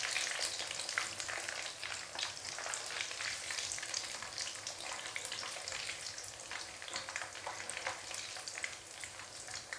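Hot oil sizzles and crackles steadily.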